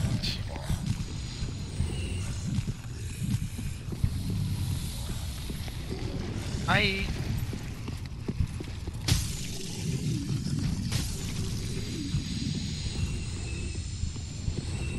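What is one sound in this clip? Footsteps crunch steadily on rough stone ground.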